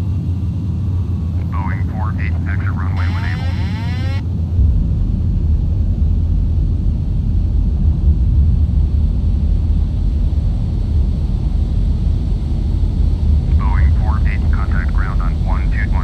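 A jet engine rumbles steadily, growing louder as the aircraft rolls along the runway.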